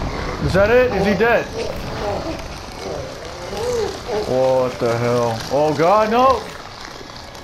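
A man shouts gleefully in a deep, rough voice.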